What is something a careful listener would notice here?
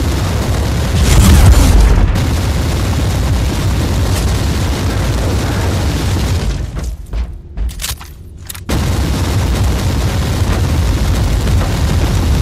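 Energy blasts crackle and hiss.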